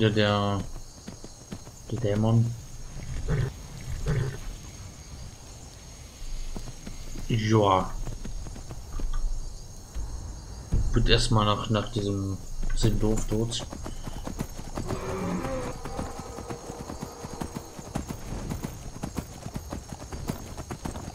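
A horse's hooves clop steadily on stony ground.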